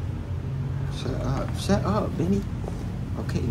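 A young man speaks briefly and softly, close by.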